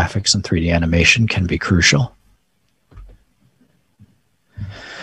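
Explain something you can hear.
A man speaks calmly into a close microphone, heard as if over an online call.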